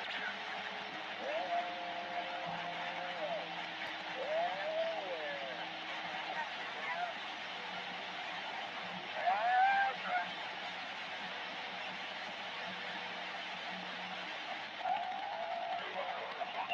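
Static hisses steadily from a radio loudspeaker.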